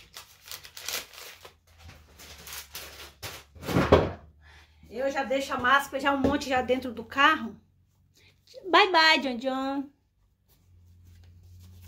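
Paper packaging rustles and crinkles.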